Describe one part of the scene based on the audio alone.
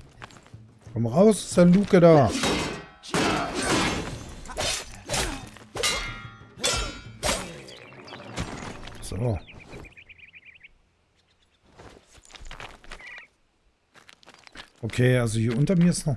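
A man speaks with animation into a microphone close by.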